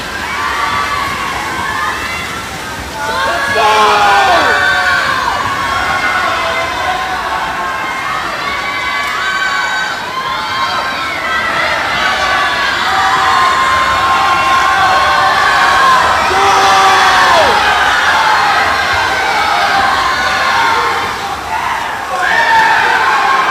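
A crowd of spectators cheers and shouts loudly in an echoing indoor pool hall.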